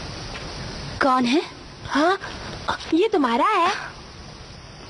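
A young boy cries out loudly with a wavering voice.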